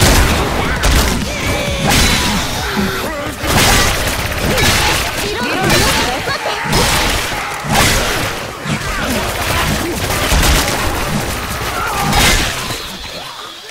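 Zombies snarl and groan nearby.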